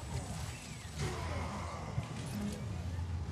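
An explosion bursts with a loud rumble.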